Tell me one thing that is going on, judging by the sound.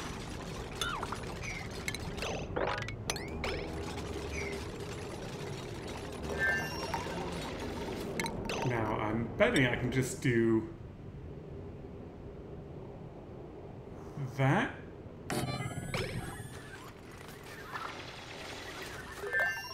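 Short interface clicks and chimes sound.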